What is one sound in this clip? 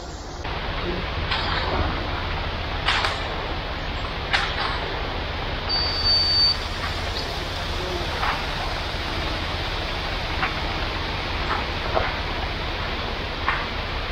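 Rakes scrape through wet concrete.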